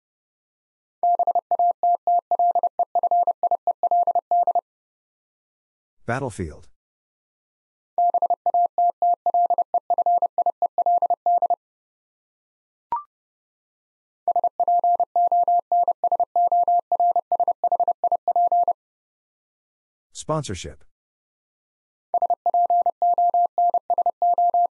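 A telegraph key taps out Morse code as rapid high beeps.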